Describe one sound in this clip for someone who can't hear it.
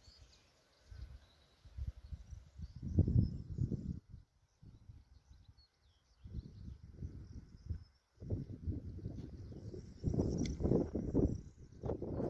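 Wind gusts blow outdoors, buffeting loudly in bursts.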